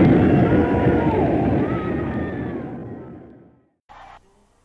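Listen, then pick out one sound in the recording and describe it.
A rock band plays loudly with electric guitars, then the music fades away.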